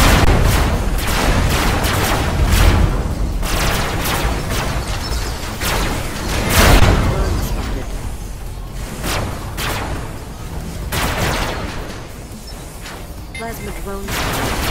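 Laser weapons fire in repeated bursts.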